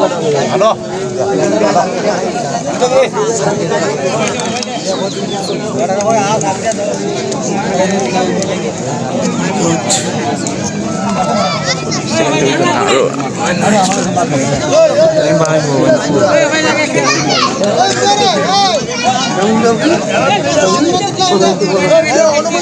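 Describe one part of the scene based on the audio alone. A large crowd of men chatters all around outdoors.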